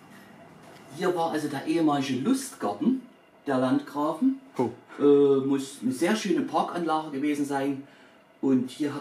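An older man speaks calmly into a close microphone.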